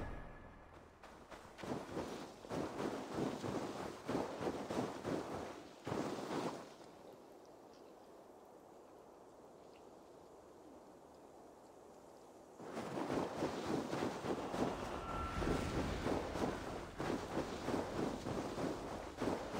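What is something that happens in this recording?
Footsteps crunch quickly through deep snow.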